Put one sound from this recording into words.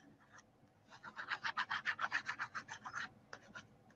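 A glue pen scrubs quickly back and forth on paper.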